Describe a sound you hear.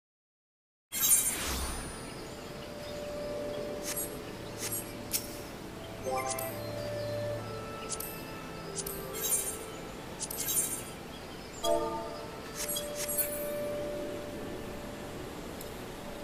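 Soft interface chimes and clicks sound as menus open and close.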